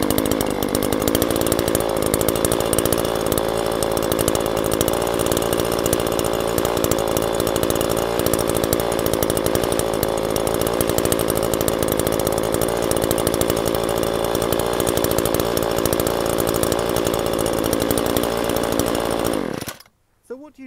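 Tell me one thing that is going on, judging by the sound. A small two-stroke engine idles steadily close by, then cuts out.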